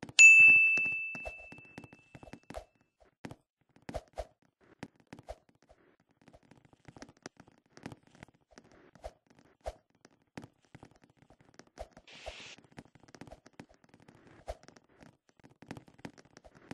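Light footsteps tap on a hard surface.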